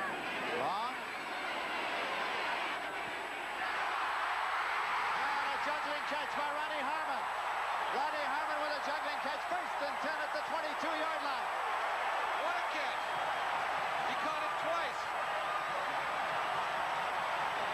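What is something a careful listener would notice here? A large stadium crowd cheers and roars outdoors.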